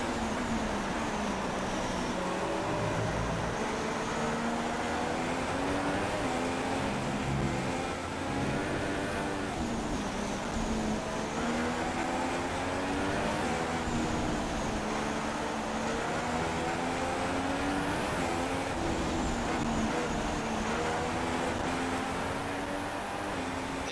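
A racing car engine screams steadily, its pitch rising and falling as it shifts gears.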